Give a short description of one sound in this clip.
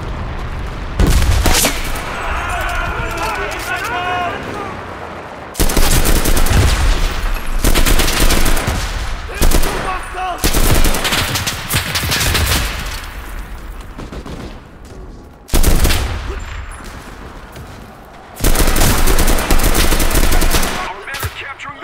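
Rifle shots ring out in loud rapid bursts.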